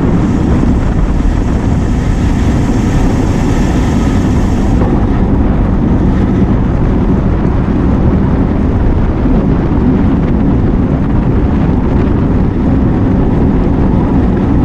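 Wind rushes loudly past a moving bicycle rider.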